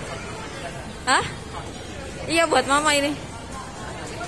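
A young girl talks close by in a high, lively voice.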